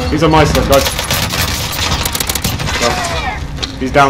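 Rapid gunshots fire at close range.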